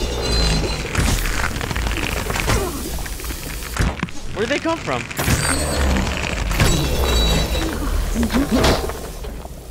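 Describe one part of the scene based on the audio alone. A bowstring twangs as an arrow flies.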